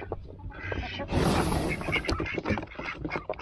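A duck's wings flap loudly as it lands.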